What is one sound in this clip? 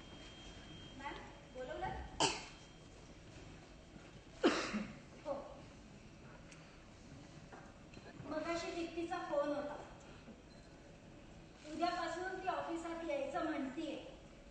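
A young woman speaks with expression in an echoing hall.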